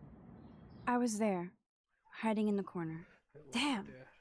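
A young woman answers softly and hesitantly.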